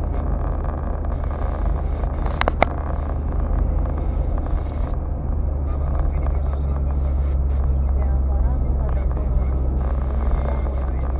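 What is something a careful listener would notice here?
Tyres roll over the road with a low rushing noise.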